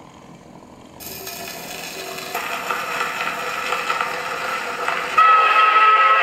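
An old gramophone plays a record with a thin, scratchy sound.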